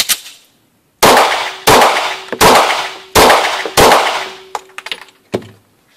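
A pistol fires several quick shots that ring out in an echoing indoor space.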